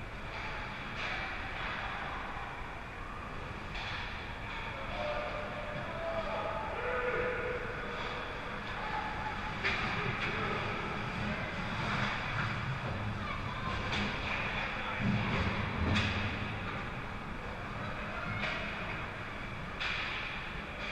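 Hockey sticks clack sharply against the puck and ice.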